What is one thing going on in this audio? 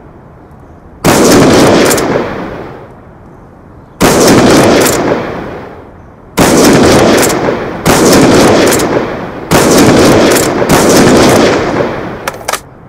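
A rifle fires loud, booming shots that echo and fade.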